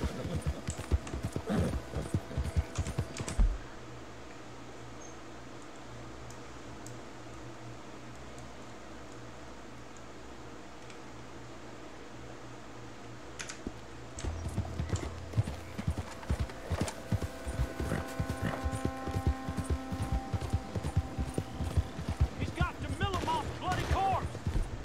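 A horse's hooves thud in a quick gallop.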